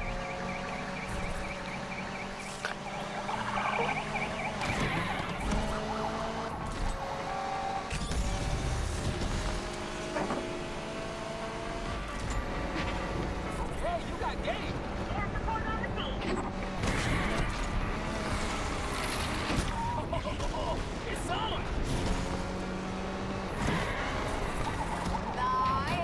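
A car engine roars and revs up and down as a car races at speed.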